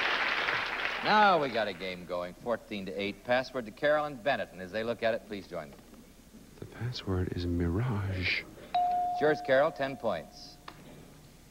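A man speaks clearly into a microphone, announcing.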